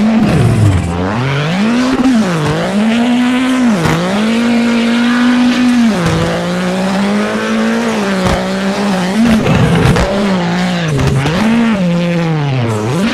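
A rally car engine revs hard, rising and falling with each gear change.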